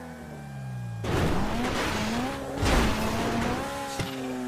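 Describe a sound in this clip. A car's tyres rumble and crunch over rough ground.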